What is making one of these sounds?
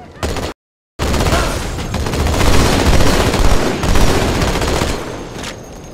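A weapon fires with a loud roaring blast.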